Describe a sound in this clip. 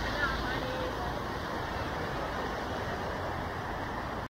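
A shallow stream rushes over rocks.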